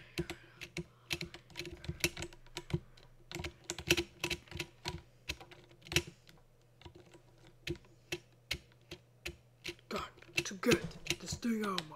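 A small scooter knocks and bumps repeatedly against a wooden beam.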